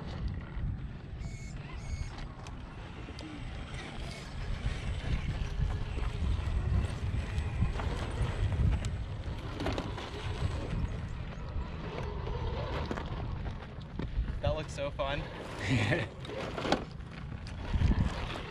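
Plastic tyres scrape and grip on rough rock.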